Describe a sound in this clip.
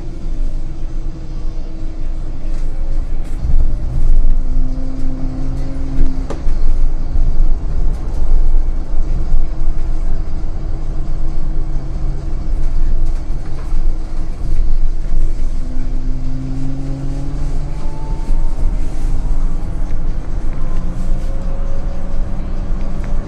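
A bus engine hums and whines steadily from inside as the bus drives along.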